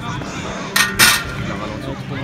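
An athlete lands with a soft thud on a padded mat.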